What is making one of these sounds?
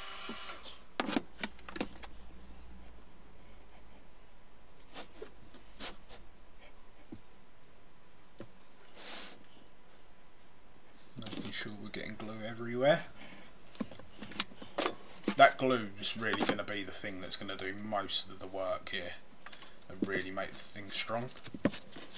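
Wooden boards and tools knock and clatter close by.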